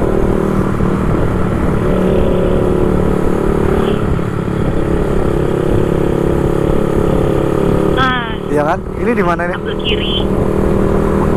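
A motorcycle engine hums steadily at close range.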